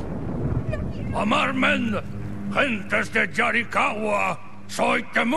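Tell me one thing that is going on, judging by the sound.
A man speaks gruffly in a deep voice.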